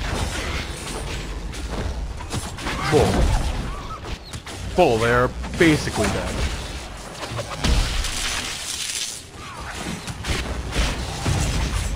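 Weapons clash and strike.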